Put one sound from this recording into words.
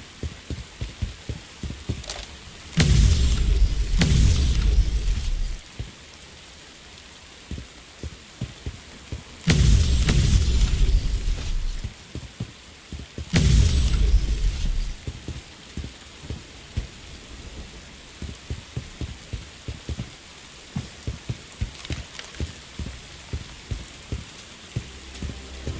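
Footsteps tread steadily over rough ground.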